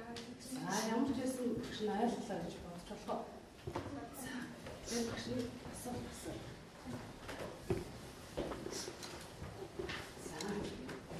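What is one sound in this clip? Children murmur and chatter in a roomy space.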